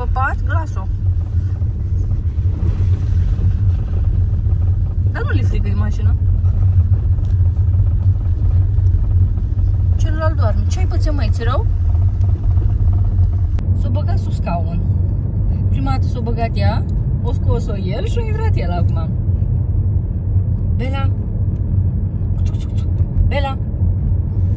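A car engine rumbles steadily with low road noise.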